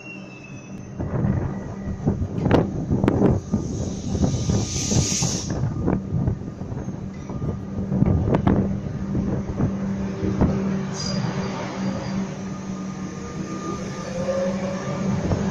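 Train wheels clatter and clunk over the rail joints.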